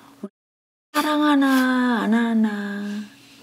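An elderly woman lets out a long, loud, wavering cry.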